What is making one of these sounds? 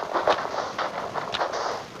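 Blocks crunch as they are dug out and placed.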